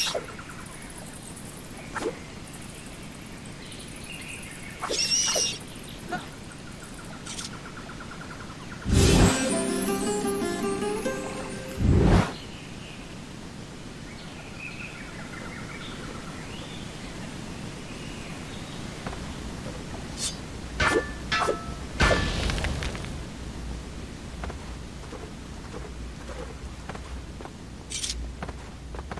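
Water splashes underfoot.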